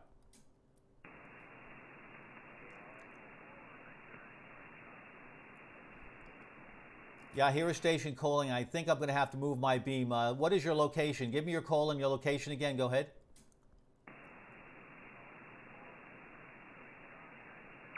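A radio receiver hisses with steady static.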